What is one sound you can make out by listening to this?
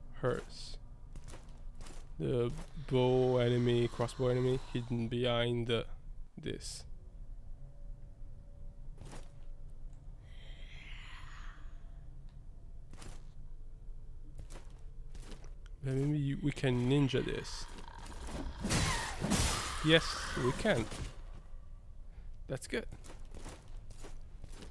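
Footsteps thud on hard stone.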